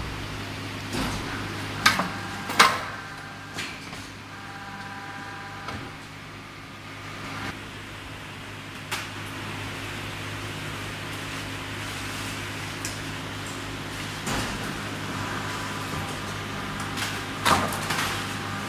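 Heavy metal mould plates clank and knock together.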